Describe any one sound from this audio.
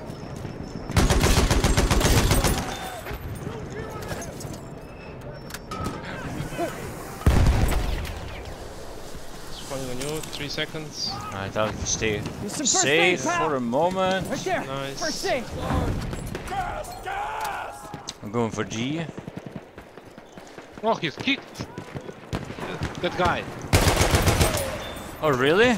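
Rifle shots crack loudly in short bursts.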